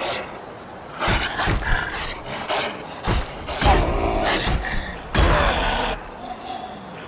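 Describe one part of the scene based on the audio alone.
Weapons strike and slash in a fierce fight.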